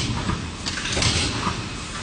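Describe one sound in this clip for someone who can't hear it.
Plastic lids clatter softly in a cardboard box.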